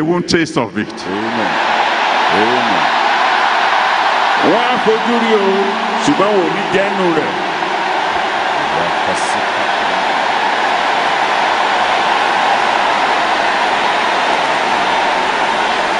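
A large crowd cheers and shouts loudly in a vast echoing hall.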